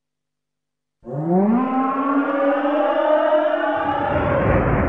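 A dragon lets out a long, rising roar.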